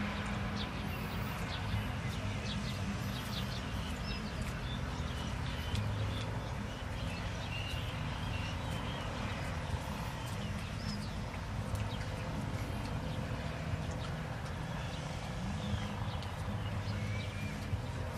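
A knife slices through crisp vegetables with quick, light clicks.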